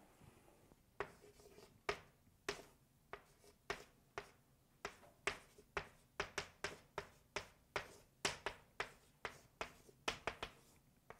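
Chalk taps and scrapes on a blackboard in quick strokes.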